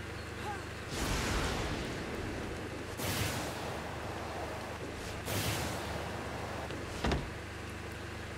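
A jetpack roars in short whooshing bursts.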